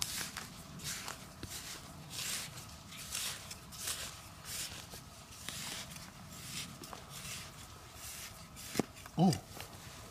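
Loose soil crumbles and trickles as it is moved by hand.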